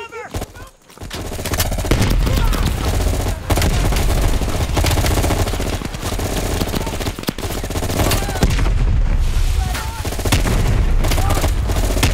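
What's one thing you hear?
A rifle fires rapid bursts of loud, booming shots.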